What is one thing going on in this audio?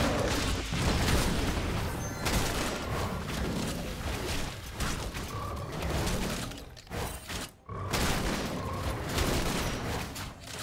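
Game spells crackle and whoosh as characters fight.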